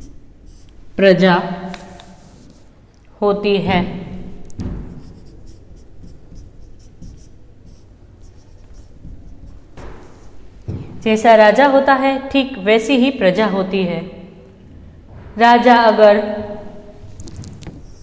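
A woman speaks clearly, close by, in bursts with pauses.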